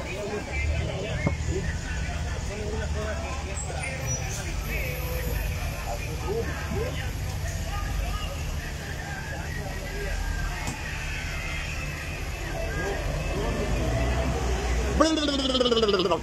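A bus engine rumbles nearby outdoors.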